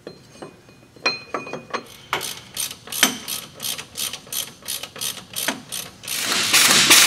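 A hand ratchet clicks rapidly.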